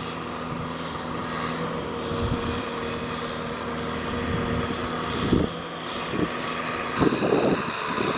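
Tractor tyres churn and splash through wet mud.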